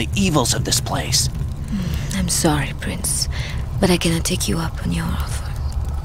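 A young woman answers coolly.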